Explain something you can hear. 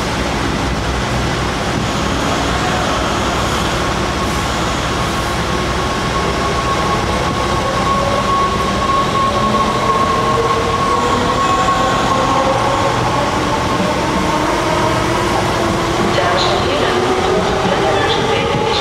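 An electric train rolls slowly into a station, its motors whining and gliding in pitch.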